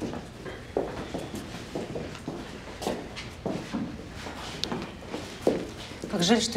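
Footsteps knock on a hard floor indoors.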